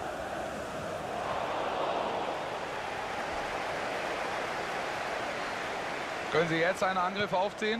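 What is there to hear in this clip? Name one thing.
A football crowd roars as an attack builds.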